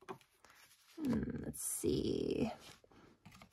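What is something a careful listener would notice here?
Stiff paper rustles as a page is lifted and turned.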